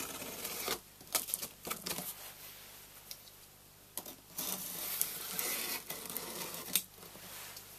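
A blade scrapes and slices through packing tape on a cardboard box.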